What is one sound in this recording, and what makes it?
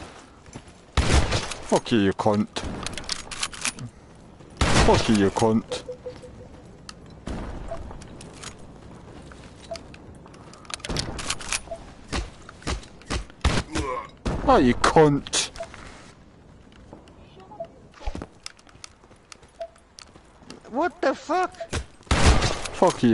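A rifle fires in rapid bursts, with sharp echoing shots.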